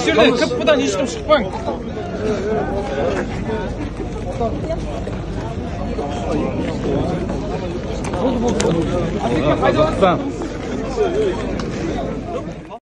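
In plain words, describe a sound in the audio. A crowd of men talks all around outdoors.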